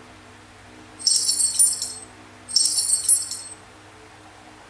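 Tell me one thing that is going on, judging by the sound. Bright coin chimes jingle twice from a tablet game's speaker.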